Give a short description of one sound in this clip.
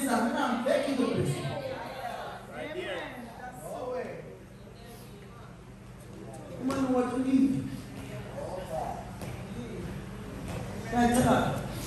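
A man preaches with passion into a microphone in an echoing hall.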